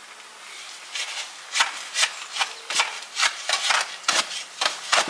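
A shovel handle knocks repeatedly against the ground.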